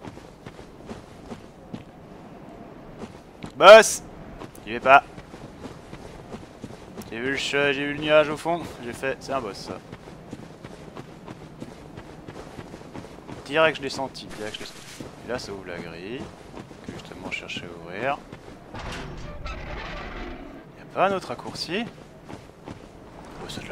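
Footsteps crunch on stone and gravel.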